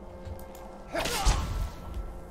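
A spell bursts out with a loud rushing whoosh.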